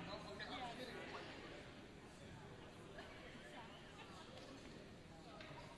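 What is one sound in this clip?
Several people chatter at a distance in a large echoing hall.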